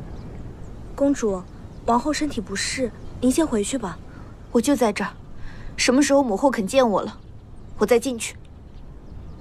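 A woman speaks in a tense, upset voice, close by.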